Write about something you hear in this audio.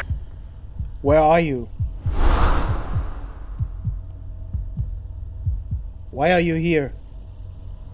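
A man talks into a microphone now and then.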